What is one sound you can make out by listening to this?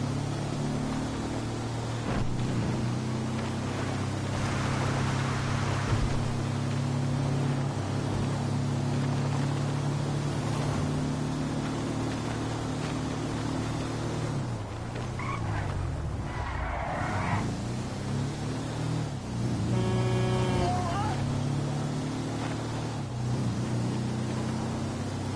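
A buggy's engine hums steadily as it drives along a road.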